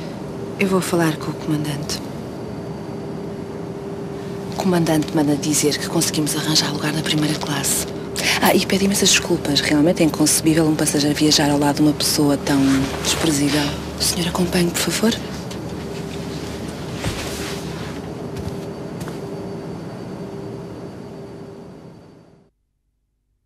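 An aircraft cabin hums steadily.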